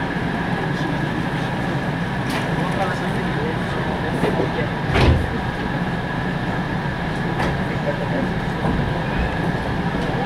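An electric commuter train hums, heard from inside while it stands at a platform.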